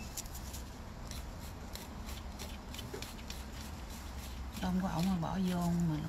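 A nail file scrapes back and forth over a fingernail.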